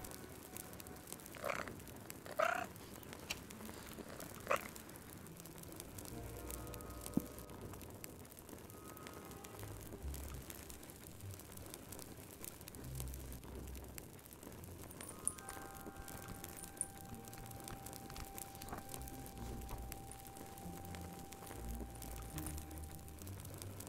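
A fire crackles and pops softly.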